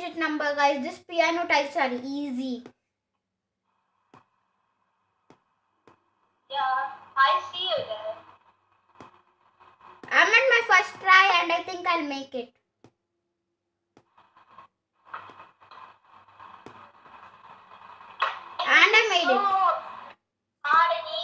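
A young boy talks with animation over a phone call.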